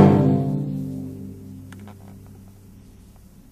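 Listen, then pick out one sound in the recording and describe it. A string orchestra's final chord rings out and fades away.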